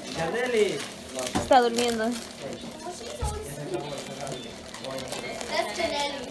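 Paper gift bags rustle as they are handled.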